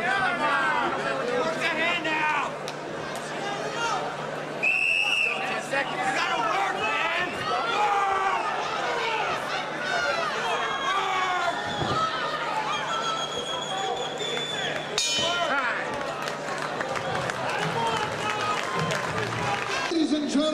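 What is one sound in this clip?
A crowd shouts and cheers loudly around a fight.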